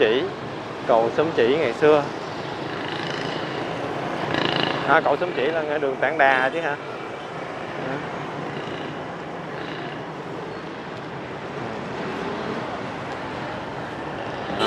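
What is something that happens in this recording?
Traffic rumbles steadily along a street outdoors.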